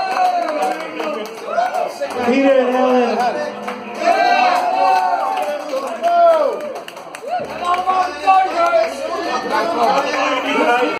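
A guitar plays loudly through an amplifier.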